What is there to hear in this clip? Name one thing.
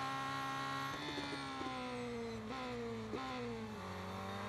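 A racing car engine drops in pitch as it slows for a corner.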